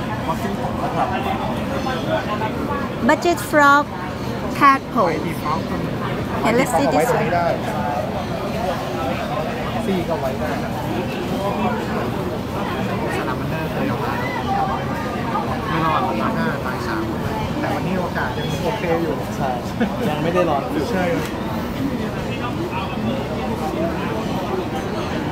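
Several adults chatter in the background outdoors.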